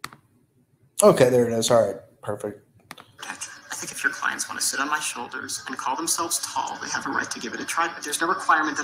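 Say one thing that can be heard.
An older man speaks firmly over a playback recording.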